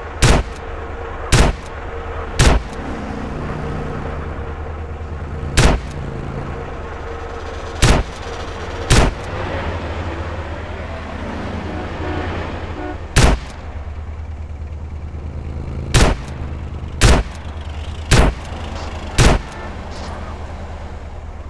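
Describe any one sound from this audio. A car engine hums steadily nearby.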